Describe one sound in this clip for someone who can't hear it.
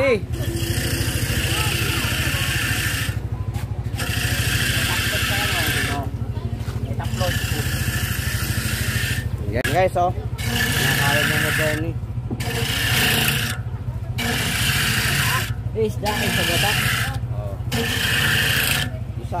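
An electric grater motor hums steadily.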